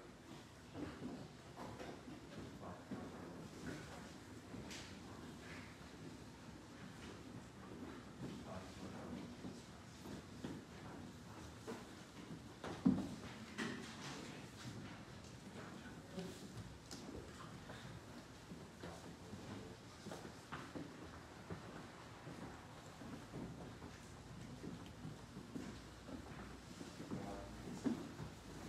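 A man speaks quietly and briefly in an echoing hall.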